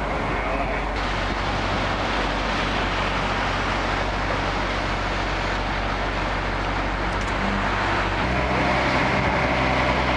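A crane's diesel engine rumbles steadily nearby.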